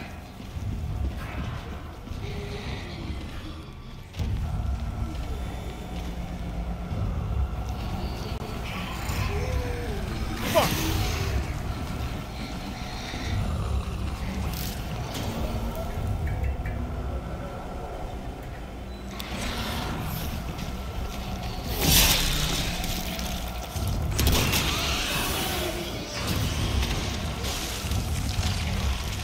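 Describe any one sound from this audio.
Footsteps thud on a metal grating floor.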